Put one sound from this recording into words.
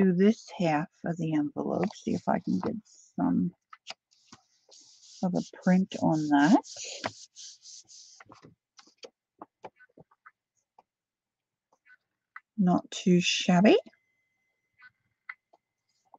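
A sheet of paper rustles as it is handled.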